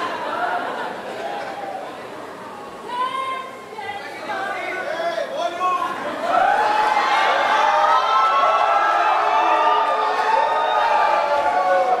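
A young woman sings alone into a microphone.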